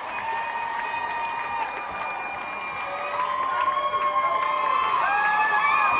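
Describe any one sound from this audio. A band plays live on stage in a large hall.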